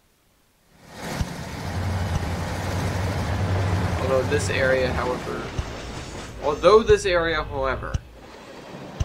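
A train rumbles past.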